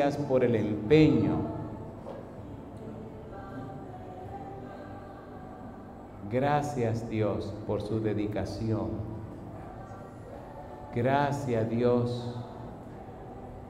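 An elderly man preaches passionately into a microphone over loudspeakers in an echoing hall.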